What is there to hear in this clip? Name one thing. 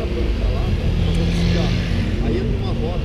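A motorcycle engine drones as it passes.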